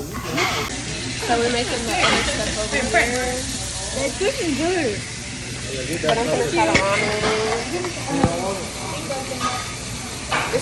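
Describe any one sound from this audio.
A young woman talks close by.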